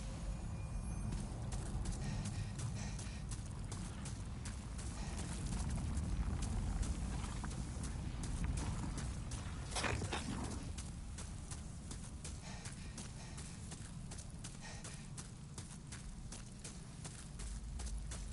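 Armoured footsteps clink and thud steadily on a rocky floor.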